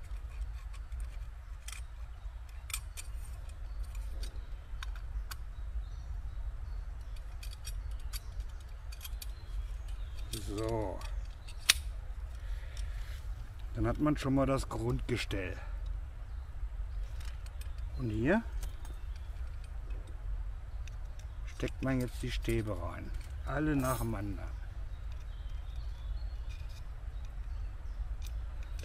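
Thin metal rods click and clink together.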